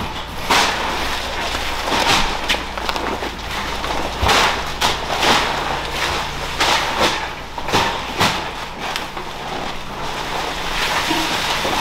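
Heavy sacks thump onto a stack of sacks.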